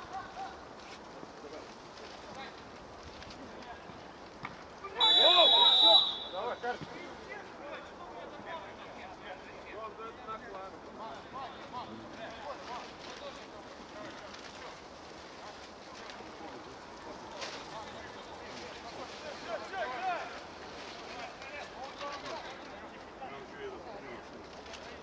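Men shout to each other at a distance outdoors.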